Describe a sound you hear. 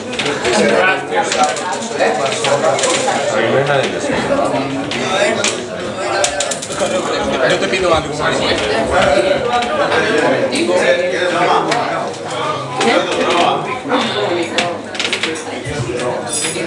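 Several young men chatter nearby.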